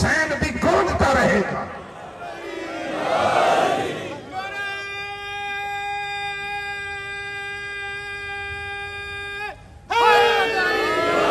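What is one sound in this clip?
A large crowd chants together outdoors.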